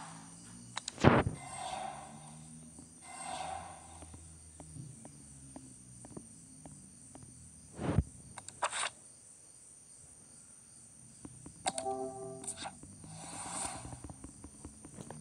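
Game menu buttons click and chime.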